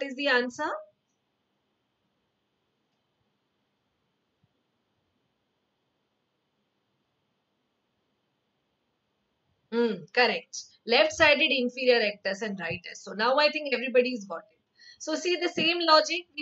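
A young woman speaks clearly into a close microphone, as if teaching.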